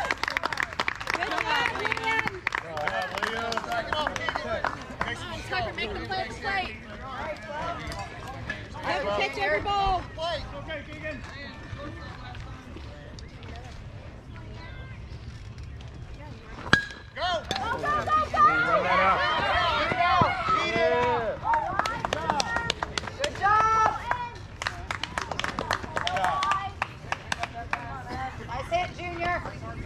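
Young players shout and cheer outdoors.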